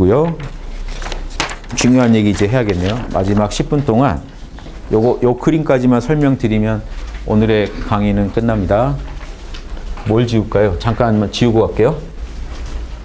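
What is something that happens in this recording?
A middle-aged man speaks with animation to a room, heard through a microphone.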